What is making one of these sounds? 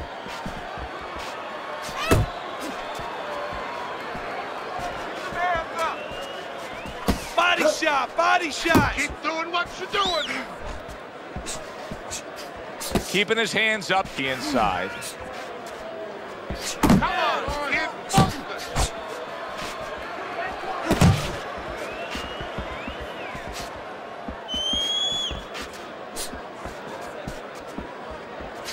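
A crowd murmurs steadily in a large arena.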